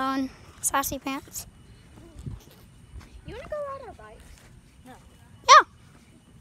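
A young boy talks close to the microphone with animation.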